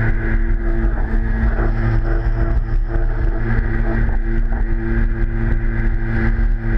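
Water splashes and rushes against a jet ski's hull.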